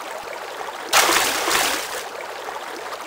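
A fish splashes out of the water.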